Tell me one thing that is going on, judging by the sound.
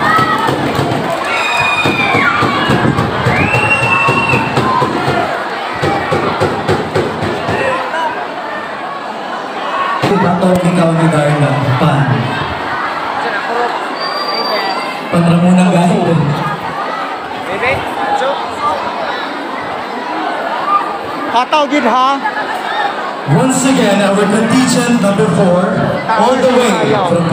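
Young women and girls shout and scream excitedly nearby.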